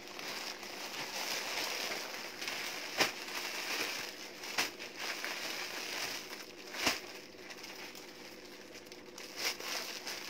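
Plastic wrapping rustles and crinkles as it is handled.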